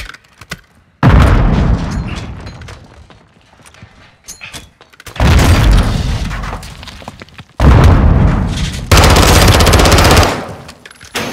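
Automatic gunfire fires in loud bursts that boom and echo.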